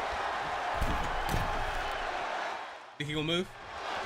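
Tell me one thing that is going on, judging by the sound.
A heavy thud of a body landing on a wrestling ring.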